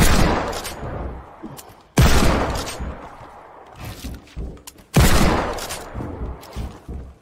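Loud shotgun blasts boom and echo briefly.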